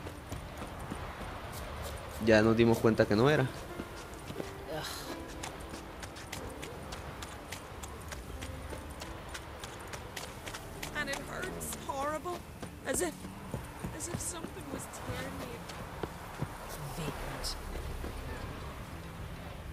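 Footsteps crunch on dirt and gravel at a steady walking pace.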